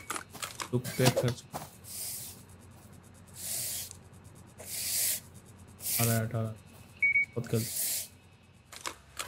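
A broom sweeps across a wooden floor in short strokes.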